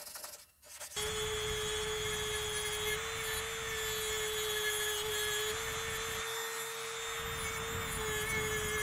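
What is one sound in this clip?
A rotary tool whines steadily as it grinds metal.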